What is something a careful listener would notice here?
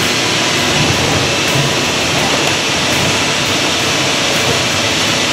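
A large machine hums and rattles steadily in a big echoing hall.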